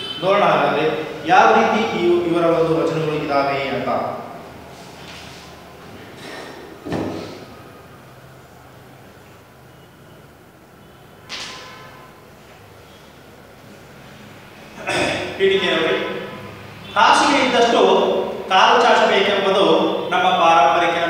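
A young man speaks clearly and with animation, close by.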